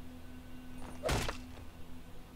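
A blade strikes with a sharp thud.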